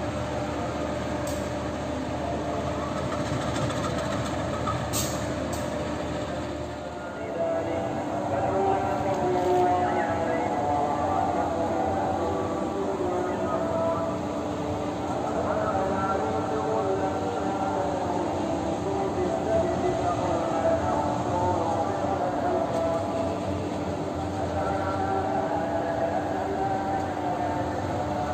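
A diesel locomotive engine rumbles steadily as it approaches slowly.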